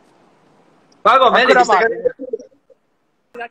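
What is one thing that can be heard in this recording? A young man speaks loudly with animation through a phone call.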